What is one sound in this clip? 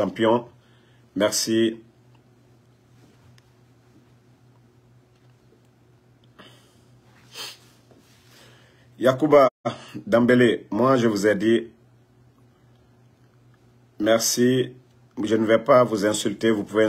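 A man speaks calmly and close to a phone microphone, in short bursts with pauses.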